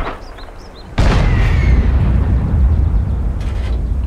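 A tank engine rumbles loudly.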